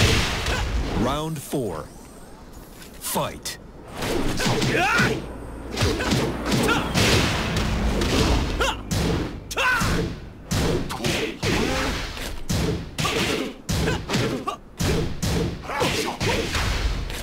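Fighters grunt and shout with effort.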